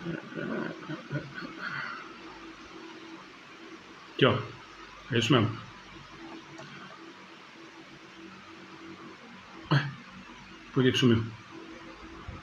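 A man speaks calmly and briefly nearby.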